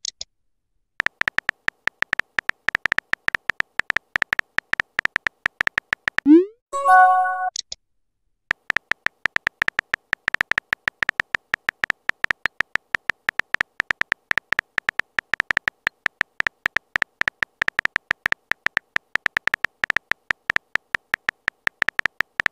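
Keys click in quick, rapid bursts of typing.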